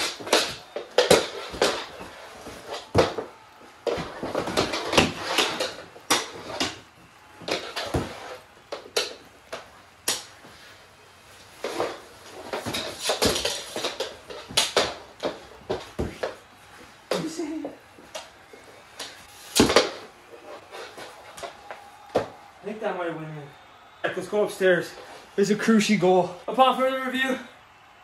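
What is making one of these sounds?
Knees and shoes thump and scuff on a wooden floor.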